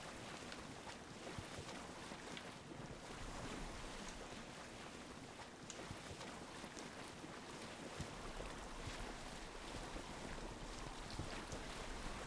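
Wind blows steadily over open water.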